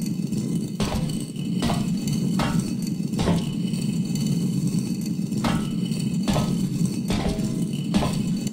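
Slow footsteps tread on a metal floor.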